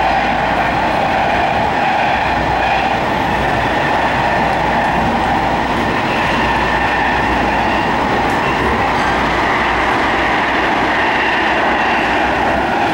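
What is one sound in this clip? Wheels screech and hum on the rails.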